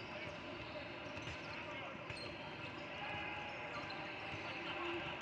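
A crowd of children and adults chatters throughout a large echoing gym.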